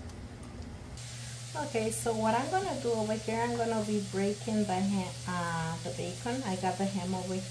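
A woman talks calmly close to the microphone.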